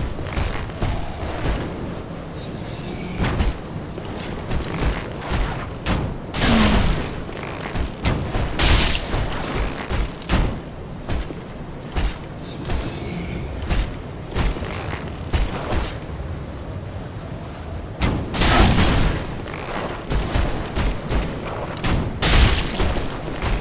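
Heavy footsteps crunch through snow.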